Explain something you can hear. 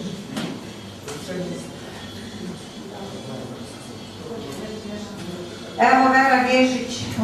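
A woman speaks into a microphone to a room, heard through a loudspeaker.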